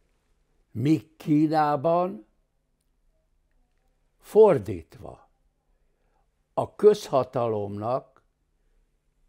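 An elderly man speaks with animation in short bursts, close to a microphone.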